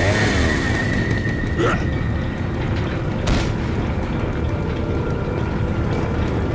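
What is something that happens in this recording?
A chainsaw engine rumbles low and steady.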